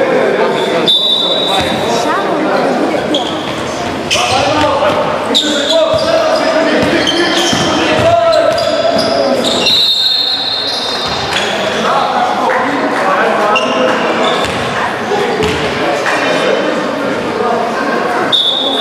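Voices of players and spectators echo in a large hall.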